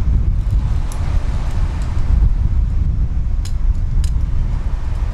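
Metal climbing gear clinks now and then.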